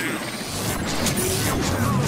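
Electric energy crackles and buzzes.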